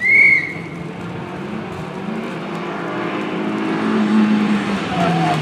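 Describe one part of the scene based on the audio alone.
A rally car engine roars closer, revving hard as it approaches.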